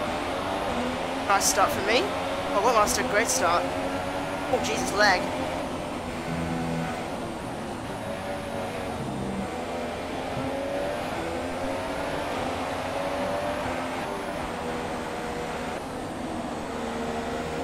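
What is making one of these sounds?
A racing car engine whines at high revs, shifting up and down through the gears.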